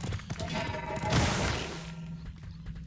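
A large magical blast bursts with a bright whoosh.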